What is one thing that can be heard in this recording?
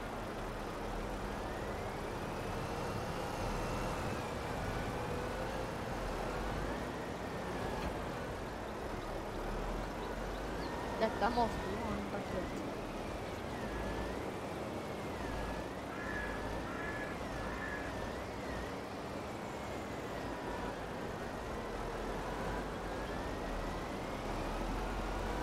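A heavy loader's diesel engine rumbles and whines steadily.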